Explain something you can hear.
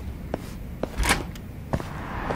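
A door swings open with a brief whoosh.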